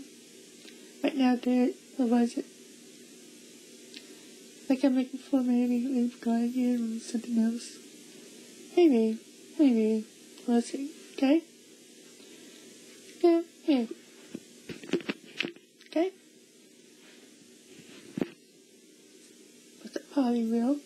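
A young woman speaks excitedly in short bursts, close by.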